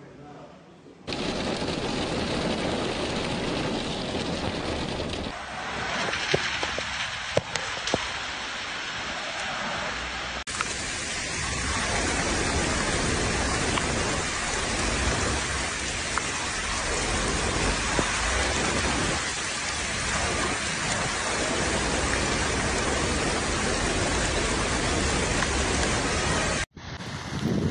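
Heavy rain pours down hard outdoors.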